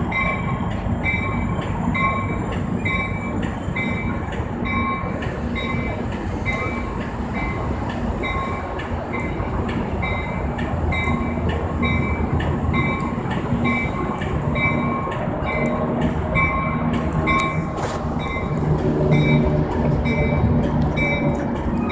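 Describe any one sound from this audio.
A locomotive bell rings in a steady, even rhythm.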